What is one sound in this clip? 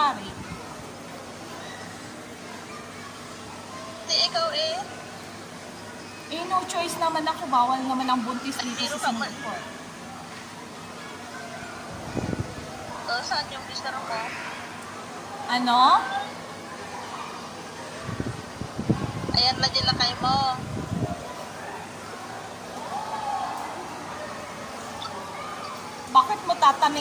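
An elderly woman speaks through an online call.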